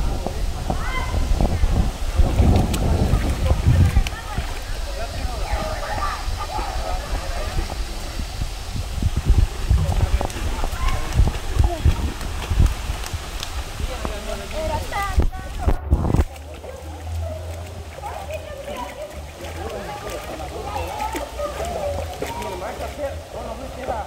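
Water splashes as a swimmer paddles and strokes nearby.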